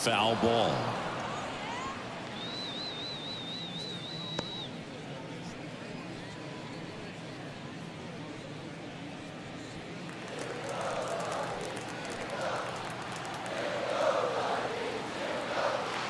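A stadium crowd murmurs and cheers, outdoors.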